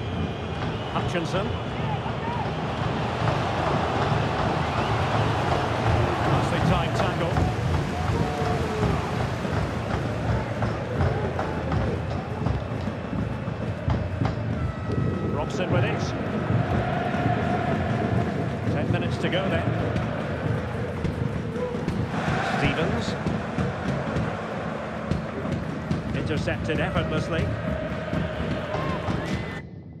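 A large crowd murmurs and chants steadily.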